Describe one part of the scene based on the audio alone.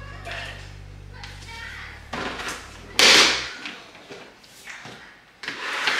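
Flip-flops slap on a tiled floor.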